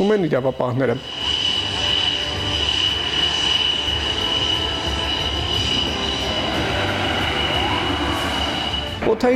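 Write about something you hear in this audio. A jet engine whines steadily nearby.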